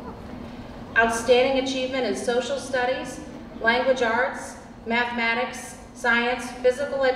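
A young girl speaks into a microphone, heard through loudspeakers in a large echoing hall.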